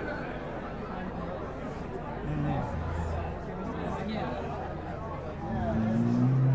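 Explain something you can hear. A crowd murmurs and chatters in a live room.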